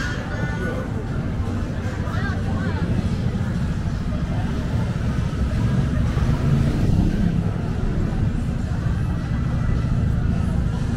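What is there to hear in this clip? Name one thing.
A busy street murmurs with distant voices outdoors.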